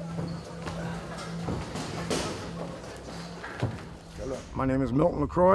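Footsteps thud on a padded floor.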